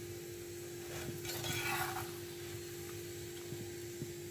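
A metal spatula scrapes against a frying pan.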